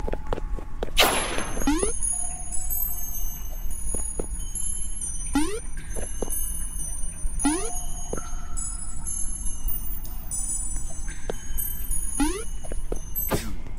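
A rising springy sound plays with each jump.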